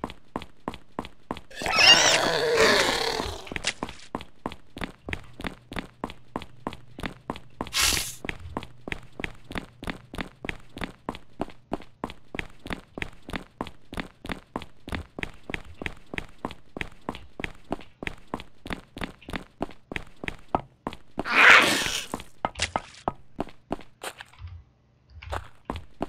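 Quick, even footsteps tap on a hard floor.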